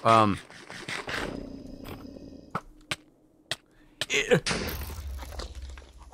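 Game blocks pop and break with short clicks.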